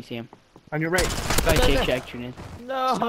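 Gunshots ring out in a rapid burst.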